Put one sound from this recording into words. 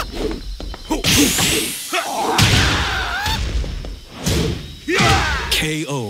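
Heavy punches and kicks land with sharp, crashing thuds.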